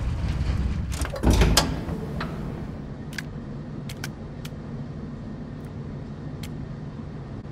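A pistol clicks as it is handled.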